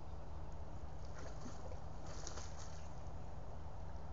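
A large animal splashes as it wades through water.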